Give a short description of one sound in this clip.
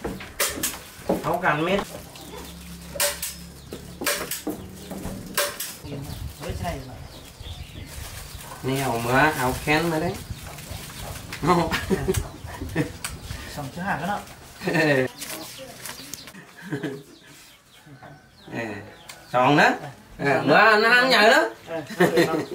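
Two men talk calmly nearby.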